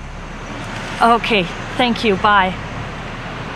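A young woman speaks briefly on a phone.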